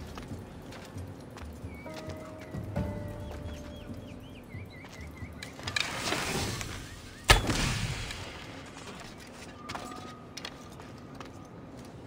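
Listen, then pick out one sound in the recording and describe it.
Hands and boots scrape and scuff on rock during a climb.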